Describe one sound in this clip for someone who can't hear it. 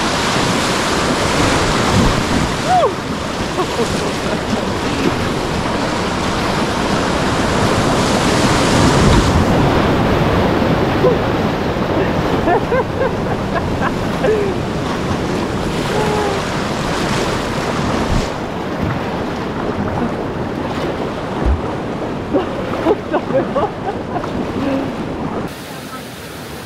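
Water slaps and gurgles against a boat close by.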